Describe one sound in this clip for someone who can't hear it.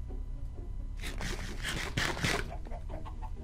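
Small items pop softly as they are picked up.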